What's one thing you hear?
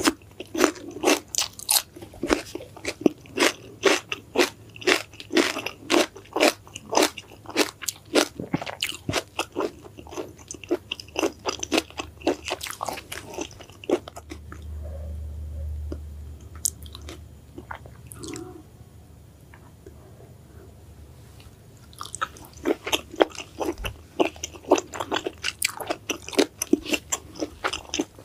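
A woman crunches loudly on crisp greens close up.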